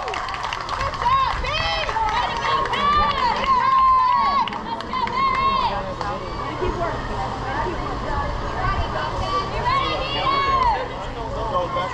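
Young children shout and cheer outdoors.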